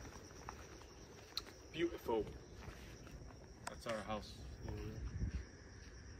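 A young man speaks casually close by.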